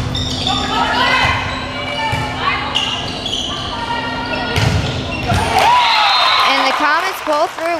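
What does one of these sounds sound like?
A volleyball smacks against hands and arms.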